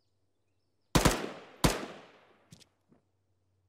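Two loud gunshots ring out, each followed by a rolling echo.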